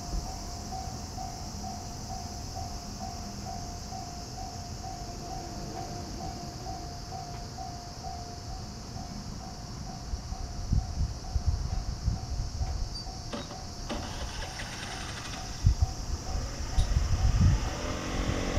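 A railway crossing bell rings steadily.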